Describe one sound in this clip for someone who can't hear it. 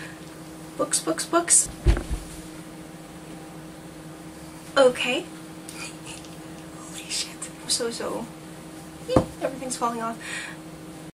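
A young woman talks close to a microphone with animation, in short bursts.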